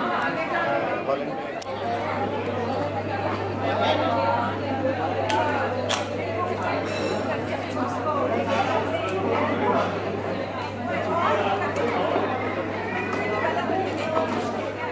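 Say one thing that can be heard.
A crowd of men and women chatter all around in a large room.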